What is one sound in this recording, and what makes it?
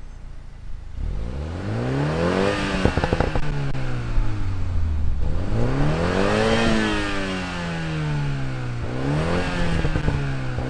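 A sports car engine revs up hard and falls back, several times.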